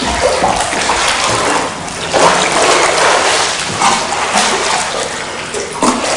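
Water splashes as a person swims.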